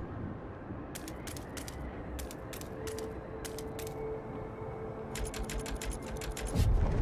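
Soft interface clicks tick in quick bursts.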